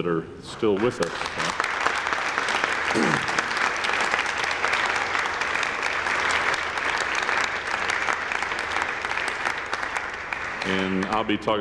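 A crowd claps its hands.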